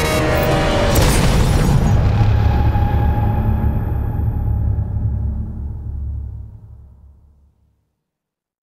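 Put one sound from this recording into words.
A huge explosion booms and rumbles, then slowly fades.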